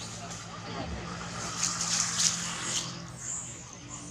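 Dry leaves rustle as a monkey scurries across the ground.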